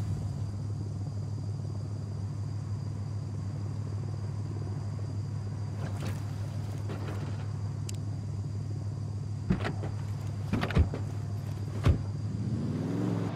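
A pickup truck engine idles.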